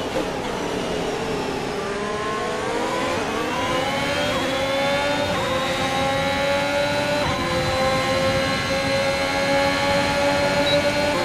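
A racing car engine screams and rises in pitch as it shifts up through the gears.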